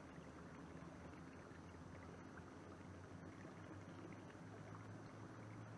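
Water laps softly against a boat's hull.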